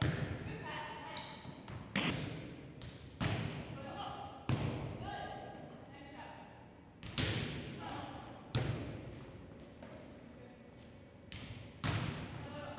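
Sneakers squeak on a wooden floor.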